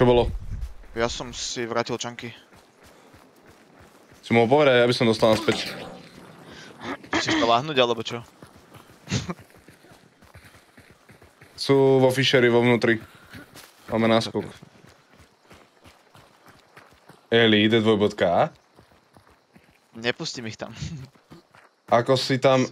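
A young man talks with animation into a close microphone, in short bursts.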